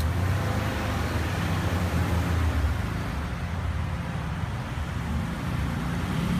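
Water from a hose splashes steadily onto the ground.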